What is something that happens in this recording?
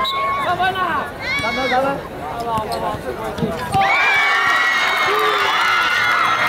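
A crowd of young people shouts and cheers outdoors.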